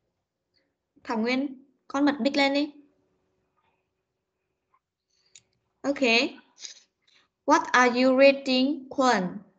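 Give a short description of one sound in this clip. A woman speaks clearly through an online call, reading out short phrases with pauses.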